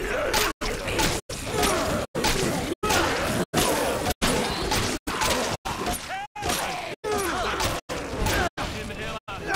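A club thuds repeatedly into bodies.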